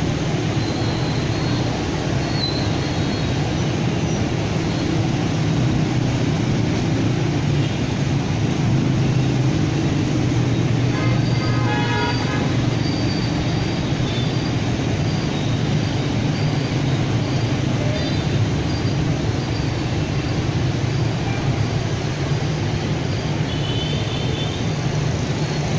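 Motorbike horns beep now and then.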